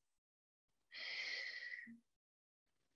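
A young woman breathes out slowly.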